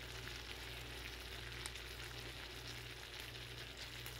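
Lemon juice splashes into a hot pan.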